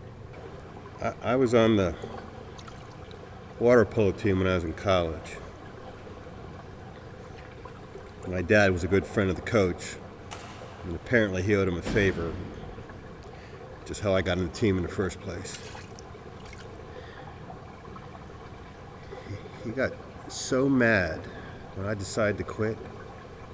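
A middle-aged man speaks quietly and slowly, close by, with pauses.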